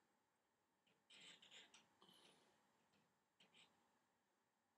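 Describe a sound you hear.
A paintbrush dabs and scrapes softly on canvas.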